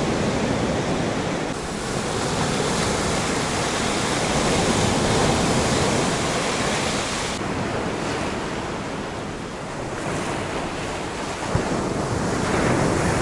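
Wind blows across outdoors.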